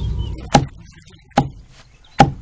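A wooden pestle pounds rice with heavy, rhythmic thuds.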